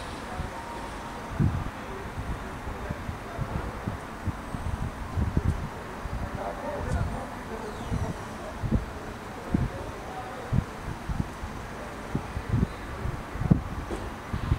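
A jet airliner's engines hum steadily as it taxis at a distance.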